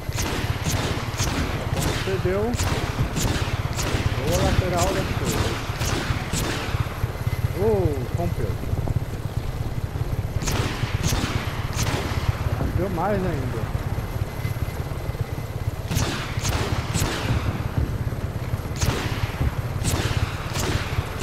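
Missiles launch and explode in a rapid series of blasts.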